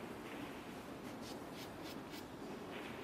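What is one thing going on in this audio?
A cue tip is chalked with short, soft scrapes.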